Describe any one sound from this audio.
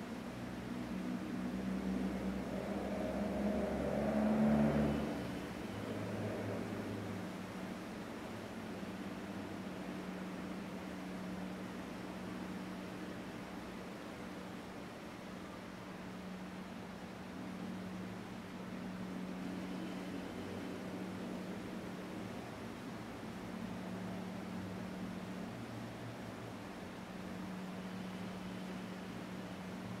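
A man hums a low, steady drone close by.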